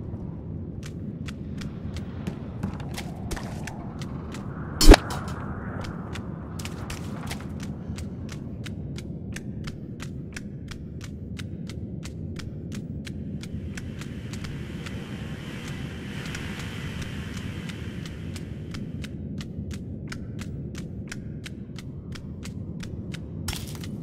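Footsteps thud quickly on a hard floor as a man runs.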